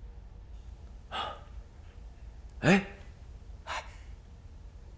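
A young man speaks with surprise, close by.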